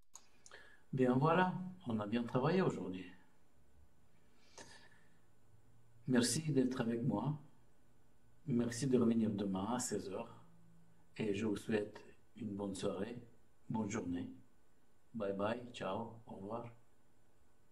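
A middle-aged man speaks calmly and close, in short phrases with pauses.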